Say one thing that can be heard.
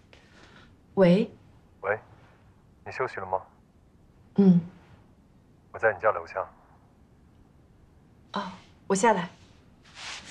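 A young woman talks calmly on a phone, close by.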